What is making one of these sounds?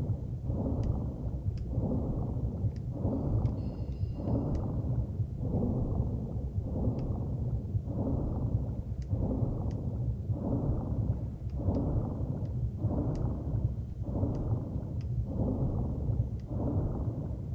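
Small bubbles pop and gurgle underwater.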